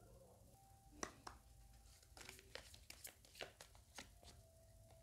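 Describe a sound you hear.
Playing cards slide and tap softly as they are gathered and laid down.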